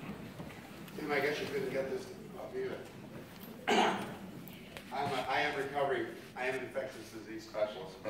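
An older man speaks into a microphone over a loudspeaker in a large echoing hall.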